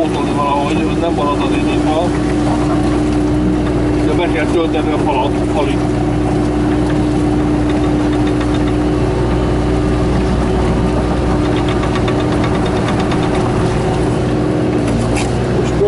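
Hydraulics whine as an excavator swings.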